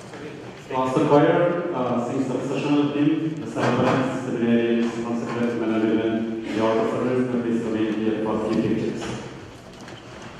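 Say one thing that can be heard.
A man sings a chant into a microphone in an echoing hall.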